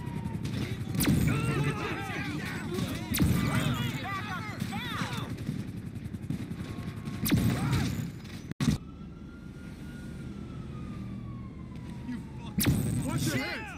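A pistol fires single loud shots with a short echo.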